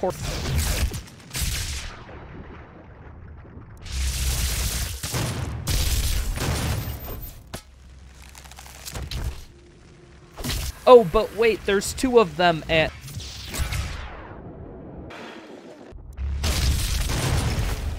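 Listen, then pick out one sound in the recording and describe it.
Heavy guns fire in loud, booming bursts.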